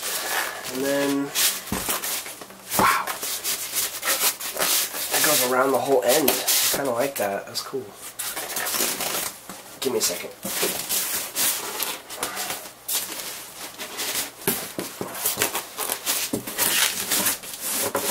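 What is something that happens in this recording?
Foam packing squeaks and scrapes against cardboard as it is moved.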